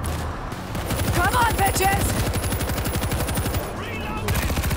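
A heavy machine gun fires a long, booming burst.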